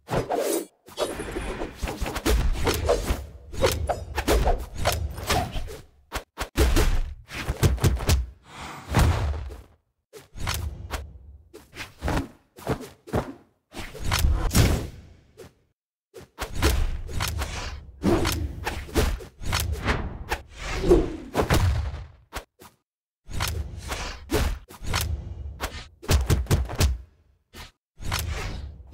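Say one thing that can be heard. Punchy game impacts thud again and again.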